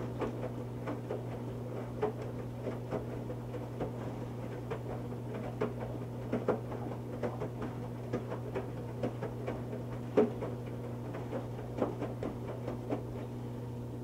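Wet laundry sloshes and thumps inside a turning drum.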